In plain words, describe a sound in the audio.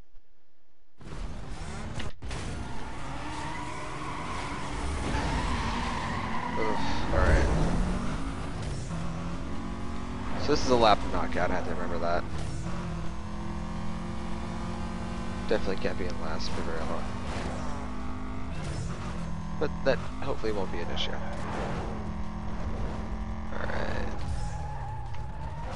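A racing car engine revs and roars, shifting up through the gears.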